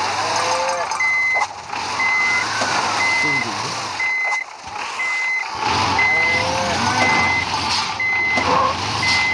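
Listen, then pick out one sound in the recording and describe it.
A warning beep repeats steadily.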